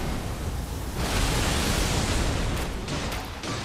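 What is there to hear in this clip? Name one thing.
Stone debris clatters and scatters.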